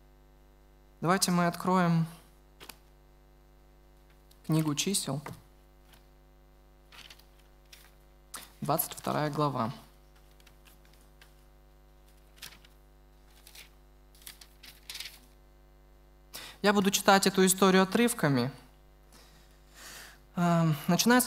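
A young man reads aloud slowly through a microphone, with pauses between phrases.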